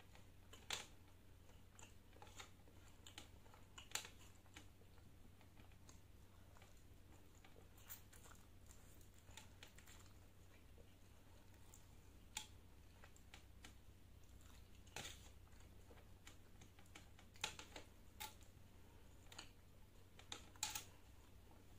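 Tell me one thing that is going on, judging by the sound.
A woman chews food with wet, smacking sounds close up.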